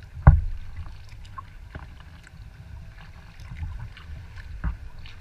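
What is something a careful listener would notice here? Wind rumbles across the water outdoors.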